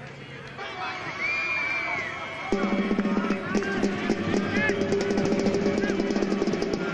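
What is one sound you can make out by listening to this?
A crowd cheers and shouts as a play starts.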